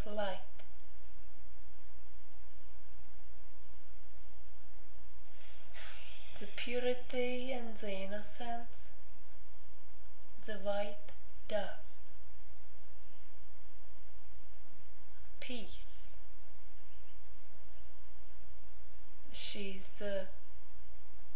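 A woman speaks close by in short bursts, with pauses between.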